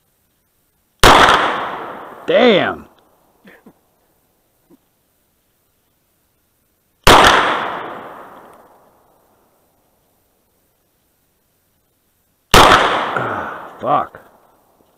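A pistol fires single loud shots that echo outdoors.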